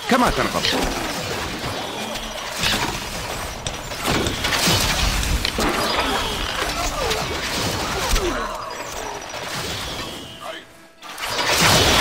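Arrows whoosh through the air in a battle.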